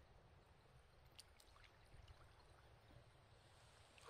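A water bird splashes softly as it dives into the water.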